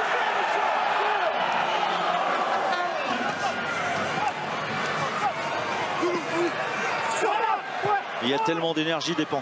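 A large crowd roars and chants in an open stadium.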